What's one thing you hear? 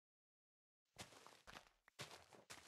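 A shovel digs into dirt with scraping crunches.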